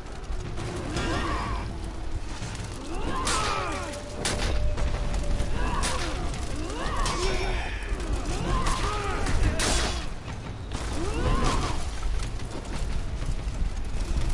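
Swords clash and clang in combat.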